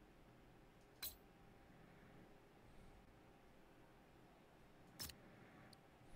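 Short electronic interface clicks sound as menu items are selected.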